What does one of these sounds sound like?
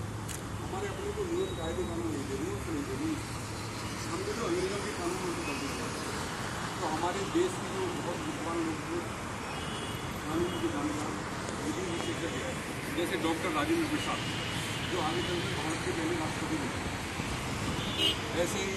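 A group of young people sing together in unison outdoors.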